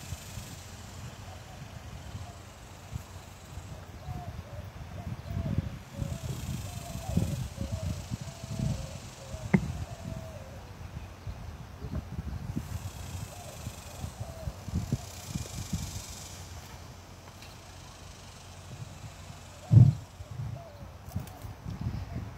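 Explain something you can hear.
Wind rumbles across an outdoor space.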